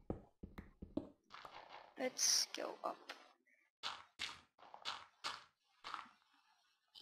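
Blocks knock and thud as they are placed in a game.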